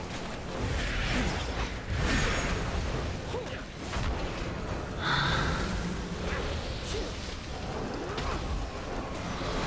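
Magic spells whoosh and crackle in a fierce battle.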